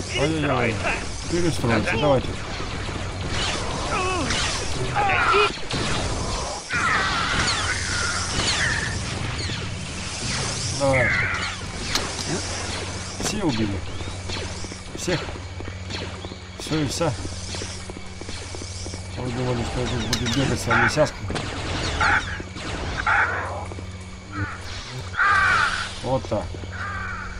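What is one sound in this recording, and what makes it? A lightsaber swings with a whooshing sound.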